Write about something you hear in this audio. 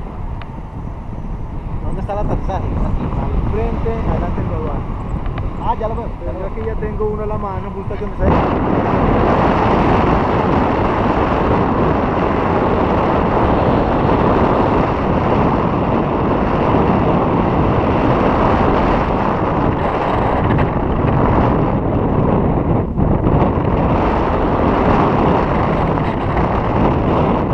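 Wind rushes over the microphone while a paraglider flies.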